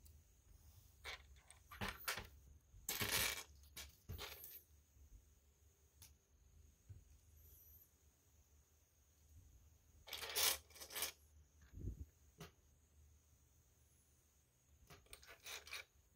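Plastic toy bricks click and rattle as they are handled and fitted together.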